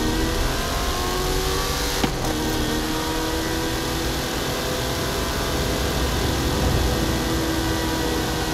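Tyres hum on a smooth track.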